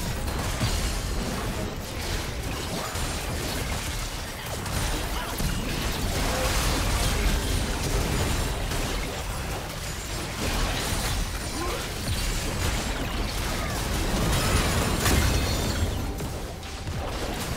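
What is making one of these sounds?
Game spell effects crackle and blast in a busy fight.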